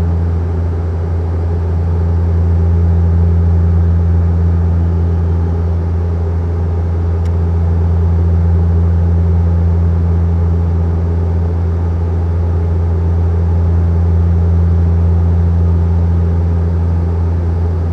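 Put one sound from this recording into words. A jet airliner's engines drone with a steady, low roar from inside the cabin.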